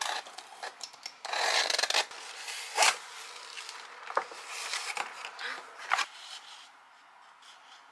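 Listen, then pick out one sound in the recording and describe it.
Cardboard and paper packaging rustle and crinkle as a box is unpacked.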